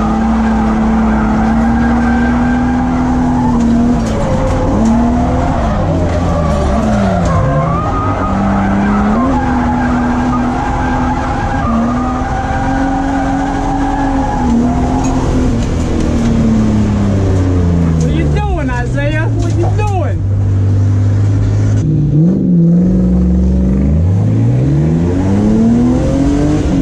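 A car engine roars loudly, revving up and down as the car drifts.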